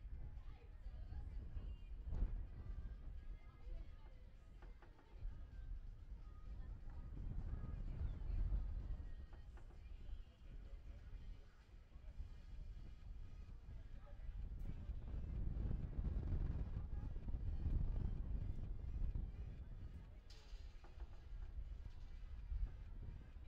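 Wind buffets a microphone outdoors in gusts.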